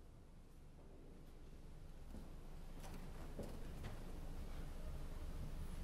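A pipe organ plays soft, low notes.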